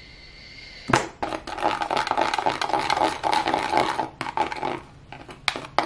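A brush stirs and scrapes thick cream in a plastic bowl.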